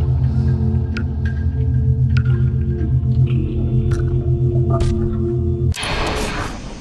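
Loud music with a steady beat plays.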